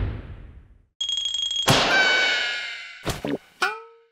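A small cartoon creature laughs in a high, squeaky voice.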